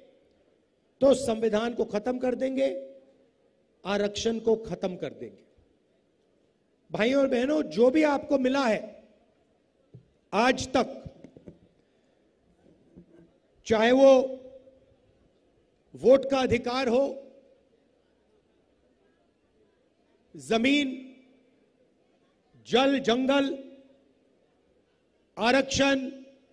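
A middle-aged man speaks forcefully into a microphone over loudspeakers, in short bursts with pauses.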